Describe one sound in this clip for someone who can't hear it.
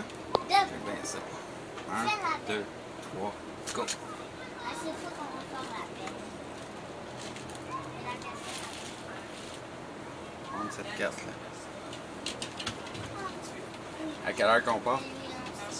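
A middle-aged man talks and laughs nearby.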